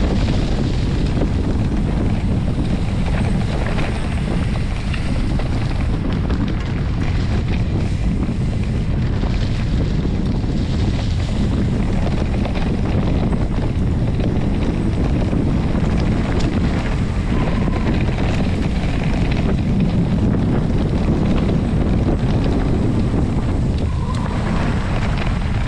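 Wind rumbles loudly against a microphone.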